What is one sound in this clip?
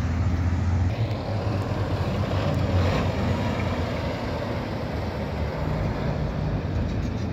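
A heavy dump truck's engine rumbles as it drives by.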